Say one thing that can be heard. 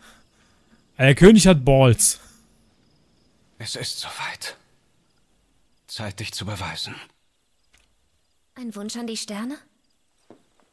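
A young man talks close into a microphone.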